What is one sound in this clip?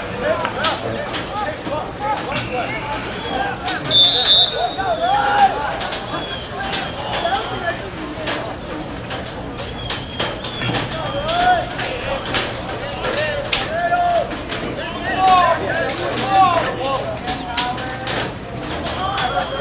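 A crowd of adult spectators shouts and cheers nearby, outdoors.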